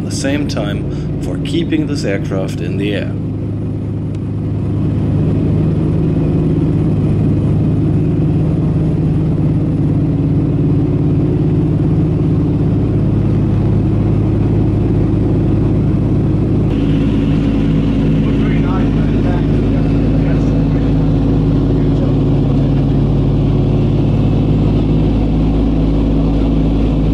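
Propeller engines drone loudly and steadily from close by, heard from inside an aircraft cabin.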